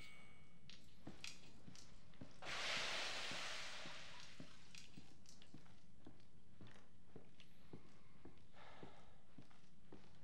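Footsteps thud slowly and steadily on creaking wooden floorboards.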